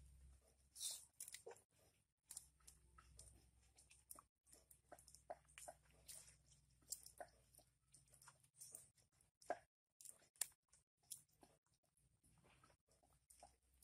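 A knife scrapes and cuts with small clicks.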